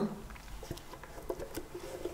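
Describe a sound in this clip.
Liquid pours from a jar into a bowl.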